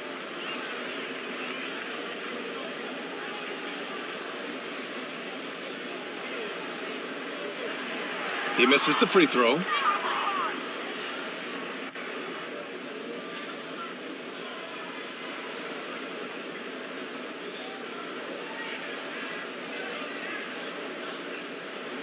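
A large crowd murmurs steadily in a big echoing arena.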